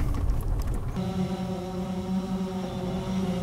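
A drone's propellers whir steadily close by.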